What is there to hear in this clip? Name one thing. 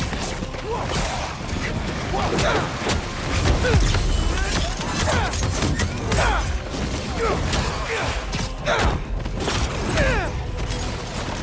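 Heavy blows and impacts thud during a fight.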